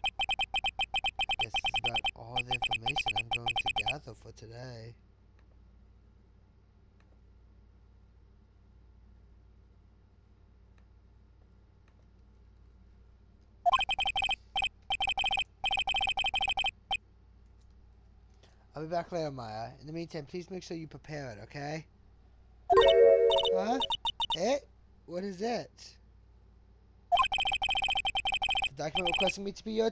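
Rapid electronic blips chirp in quick bursts.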